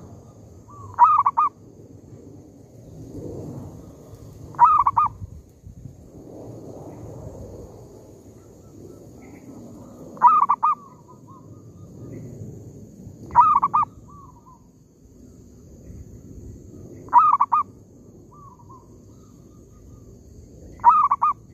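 A caged bird calls in short, loud bursts every few seconds.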